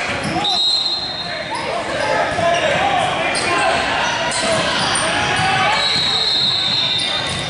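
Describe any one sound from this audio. Sneakers squeak on a gym floor in a large echoing hall.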